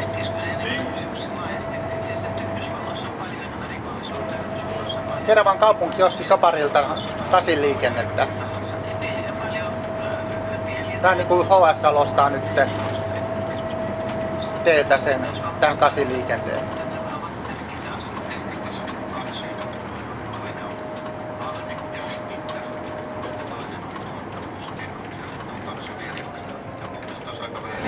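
A vehicle's engine hums steadily while driving along a road.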